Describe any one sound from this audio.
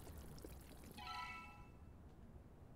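A bright, shimmering chime rings out briefly.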